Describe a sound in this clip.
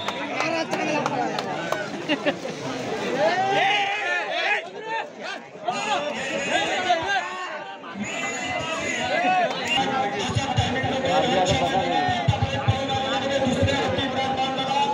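A large outdoor crowd of men shouts and cheers loudly.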